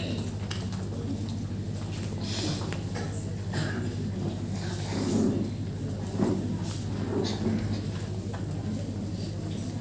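A group of women sing together in an echoing hall.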